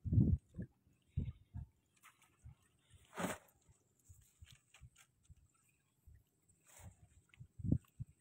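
Wet seaweed rustles and swishes.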